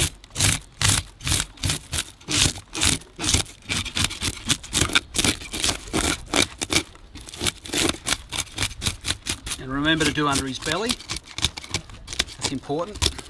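A scaler scrapes rapidly over fish scales in rough, rasping strokes.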